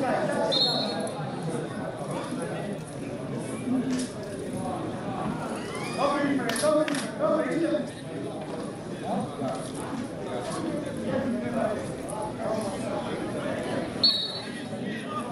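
A referee's whistle blows short sharp blasts.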